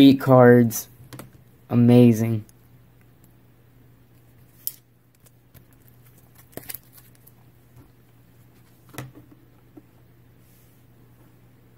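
A plastic card case taps and clacks on a mat.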